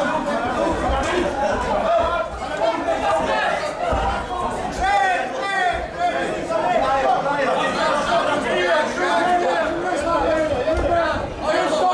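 Kickboxers' punches and kicks thud against bodies.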